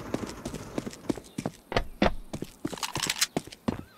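A gun clicks and rattles as it is readied.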